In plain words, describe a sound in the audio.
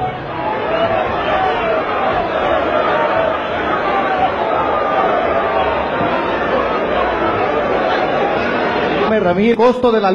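A crowd of men talk over each other.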